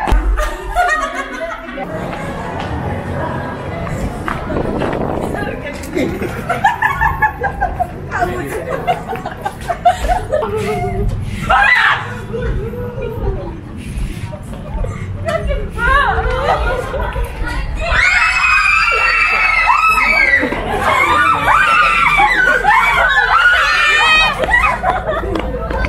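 Young women laugh loudly close by.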